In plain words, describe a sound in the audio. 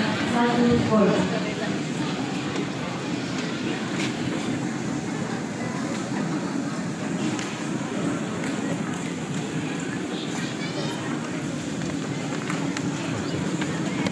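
A large crowd of children and adults sings together outdoors.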